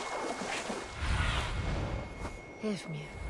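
A large bird beats its wings with a deep whoosh.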